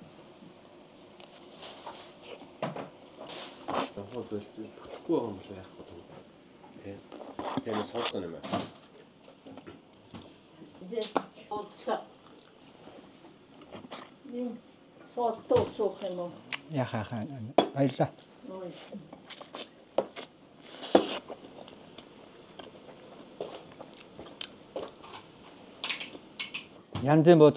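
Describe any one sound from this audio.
A young man bites and chews crunchy food up close.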